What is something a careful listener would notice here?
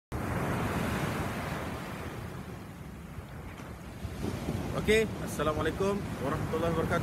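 Waves wash onto the shore, outdoors in wind.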